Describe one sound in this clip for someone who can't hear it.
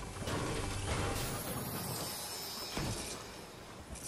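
A treasure chest bursts open with a bright, sparkling chime.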